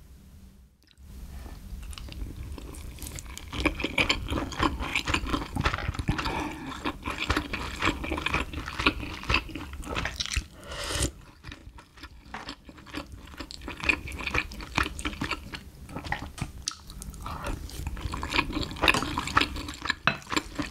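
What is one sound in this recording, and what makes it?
A young woman chews food close to a microphone with wet, squelching sounds.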